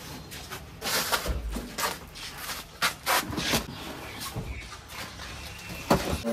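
A cardboard box thumps and scrapes as a man moves it.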